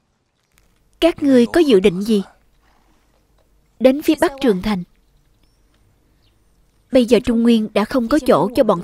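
A young woman speaks calmly in short phrases, close by.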